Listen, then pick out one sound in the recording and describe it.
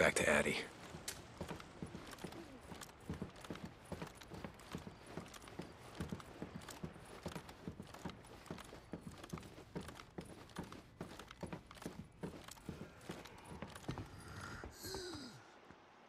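Soft footsteps creak slowly across wooden floorboards.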